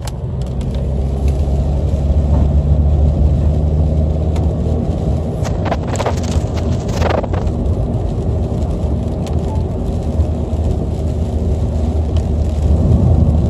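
Raindrops patter on a windscreen.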